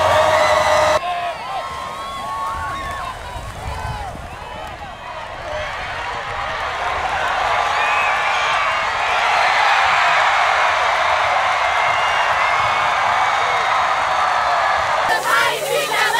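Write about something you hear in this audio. A large crowd cheers and shouts outdoors, swelling louder.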